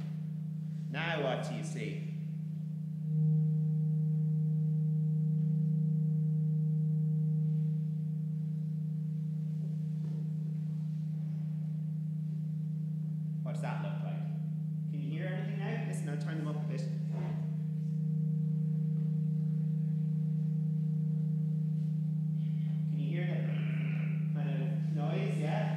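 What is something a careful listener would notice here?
A steady low electrical hum drones.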